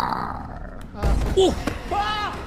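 A young man exclaims with animation close to a microphone.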